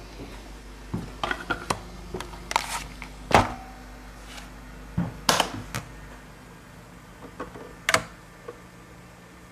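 A vinyl record clicks and knocks as it is handled and set on a turntable.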